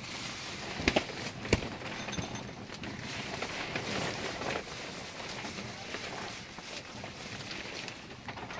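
A plastic bag rustles and crinkles as it is handled.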